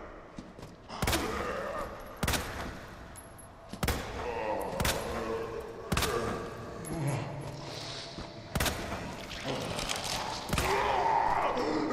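A pistol fires sharp shots in quick bursts.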